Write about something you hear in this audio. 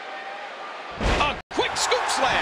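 A body slams hard onto a wrestling ring mat.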